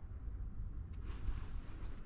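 A paper card rustles in a hand.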